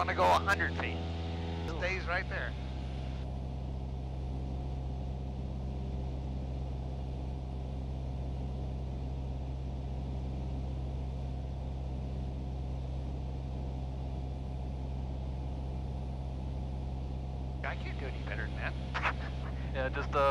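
A man speaks over a headset radio intercom.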